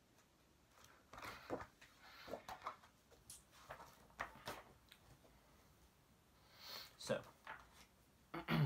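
Paper rustles and crinkles as pages are handled.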